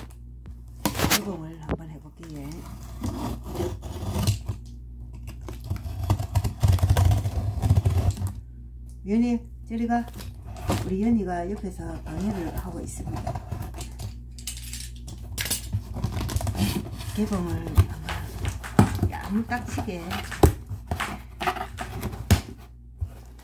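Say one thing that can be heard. A cardboard box rustles and thumps as it is handled.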